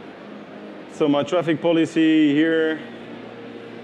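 A man speaks briefly into a microphone in a large hall, heard over loudspeakers.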